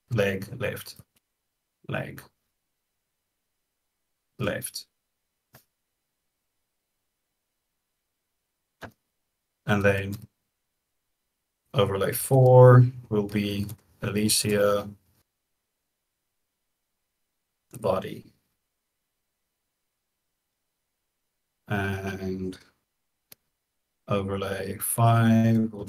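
A man talks casually in short bursts over an online call.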